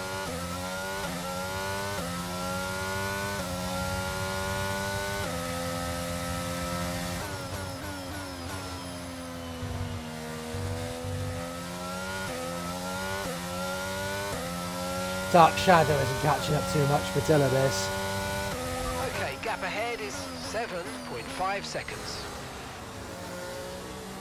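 A racing car engine whines at high revs, shifting up through the gears and dropping as it brakes.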